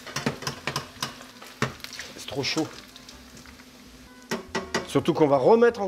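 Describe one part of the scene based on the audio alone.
A metal spoon clicks and scrapes against a pan.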